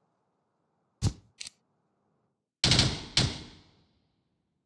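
A rifle clicks and clacks sharply as it is handled.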